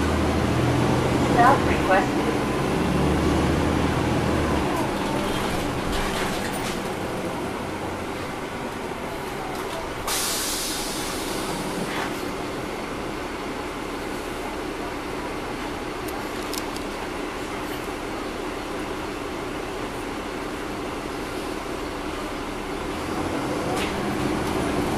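A bus engine rumbles steadily while riding.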